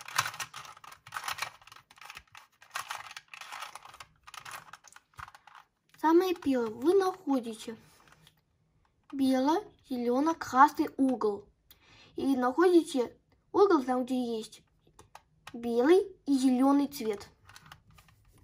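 A plastic puzzle cube clicks and rattles as it is twisted quickly.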